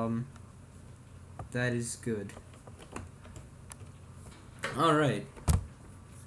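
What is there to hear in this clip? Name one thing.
A young man speaks briefly and casually close by.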